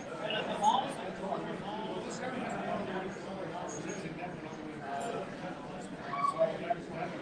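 Several men talk at once in a room.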